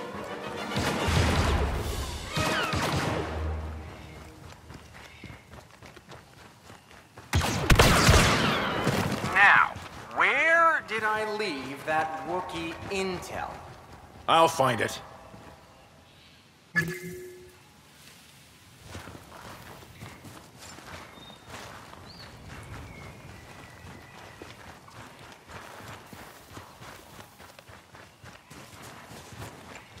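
Footsteps run over dirt and stone.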